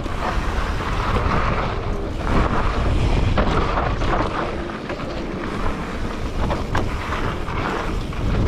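Bicycle tyres crunch and rumble over a dirt trail.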